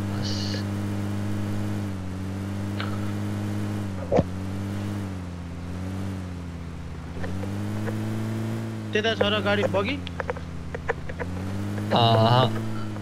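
A vehicle engine drones steadily as it drives over rough ground.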